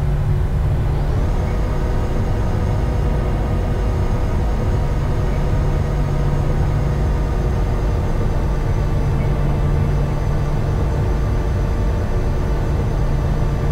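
A jet engine's whine rises in pitch and holds steady.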